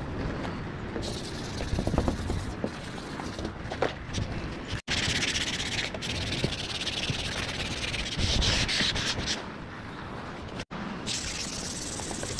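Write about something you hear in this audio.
Sandpaper rubs and scrapes against a metal car body.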